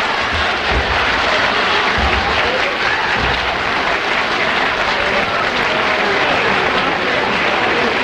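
A middle-aged man laughs loudly.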